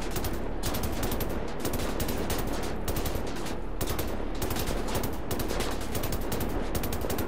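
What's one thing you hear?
A heavy gun fires rapid bursts of shots.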